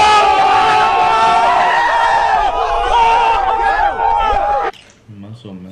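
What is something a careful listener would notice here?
A group of young men shout and cheer excitedly outdoors.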